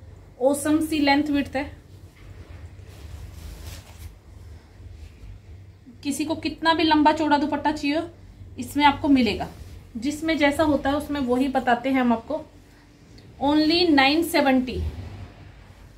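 A woman speaks close by with animation, in short bursts.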